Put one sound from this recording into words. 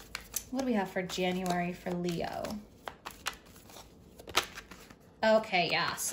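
Playing cards riffle and slap together as they are shuffled close by.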